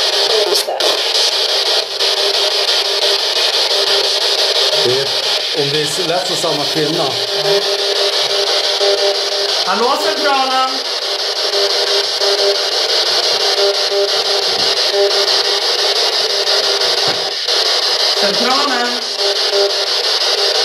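A handheld radio hisses with loud, steady static.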